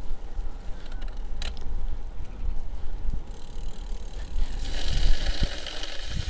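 Bicycle tyres roll over the road surface.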